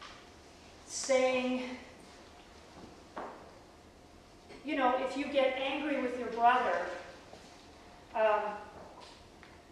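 A woman speaks calmly and close by, with pauses.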